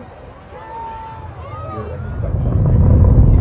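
A rocket engine rumbles in the distance.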